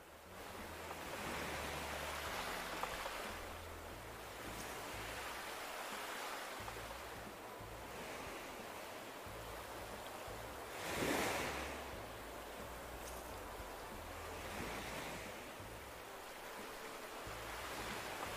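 Gentle waves wash softly onto a shore in swelling surges.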